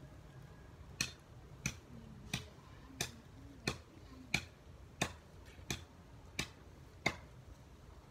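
Sharp knocks ring out in a steady rhythm as someone works at a young plant's stake.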